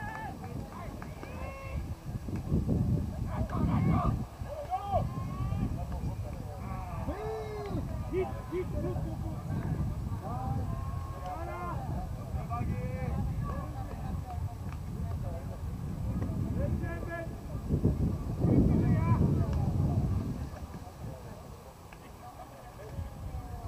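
Men call out and talk to each other outdoors, nearby and further off.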